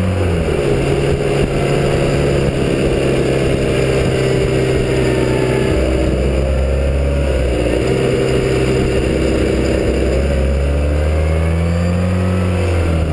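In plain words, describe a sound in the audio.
A motorcycle engine hums steadily, rising and falling in pitch as the rider changes speed.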